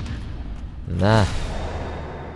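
A sword strikes armour with a sharp metallic clang.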